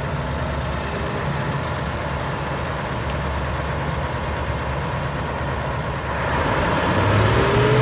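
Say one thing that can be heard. A forage harvester's diesel engine roars steadily close by.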